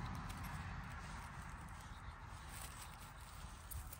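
A knife cuts through a mushroom stem.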